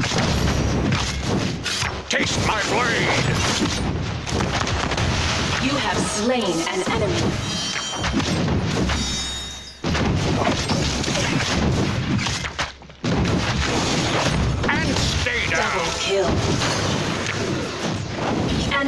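Game combat effects clash and zap in quick bursts.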